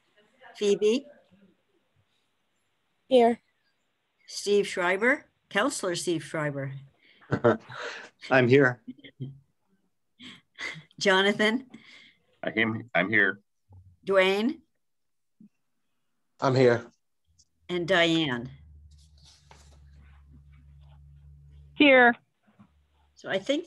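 A woman speaks with animation over an online call, in short bursts.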